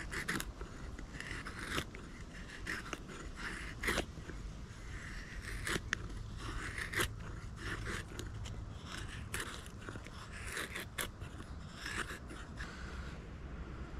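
A knife knocks and splits into dry wood.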